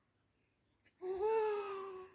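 A baby lets out a loud, high squeal close by.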